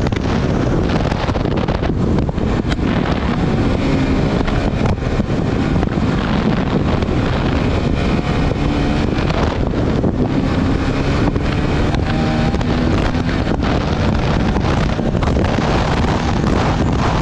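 A motorcycle engine roars steadily close by.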